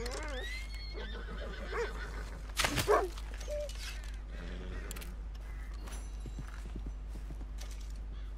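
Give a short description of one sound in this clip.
A knife cuts and tears wetly through an animal's hide.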